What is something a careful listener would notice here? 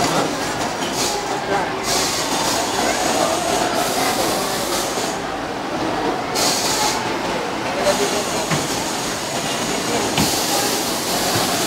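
Wind blows outdoors, rustling and buffeting the microphone.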